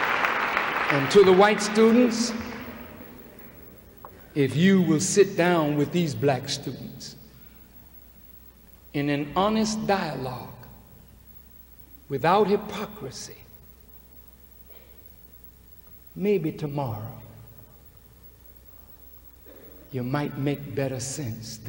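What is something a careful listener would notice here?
A man speaks forcefully into a microphone over a loudspeaker, in bursts with pauses.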